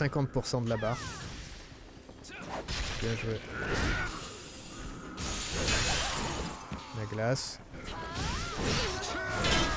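Magic blasts burst and crackle.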